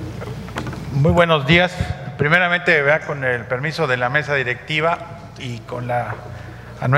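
A middle-aged man speaks forcefully through a microphone.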